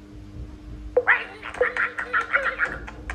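Cheerful game music plays.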